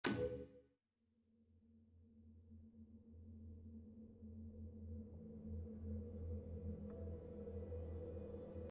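Wind blows across open ground, slowly swelling.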